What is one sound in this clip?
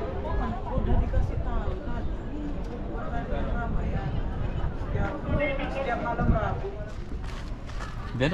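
A man speaks calmly and close by, outdoors in light wind.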